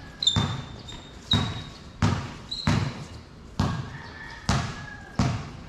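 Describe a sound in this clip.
A basketball bounces on a hard court with loud, regular thuds.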